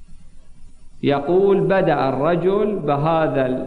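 A man speaks into a microphone in a slow, preaching tone.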